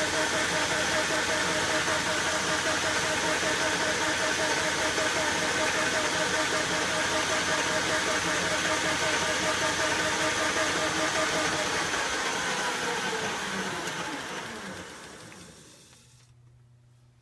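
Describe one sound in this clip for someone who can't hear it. A lathe spindle whirs loudly at speed, then winds down to a stop.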